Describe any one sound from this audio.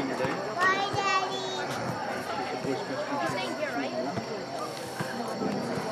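Young women call out to each other across an open field.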